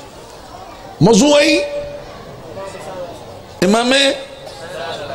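A middle-aged man cries out loudly in drawn-out, sung wails through a microphone.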